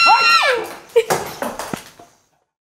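A young boy laughs excitedly.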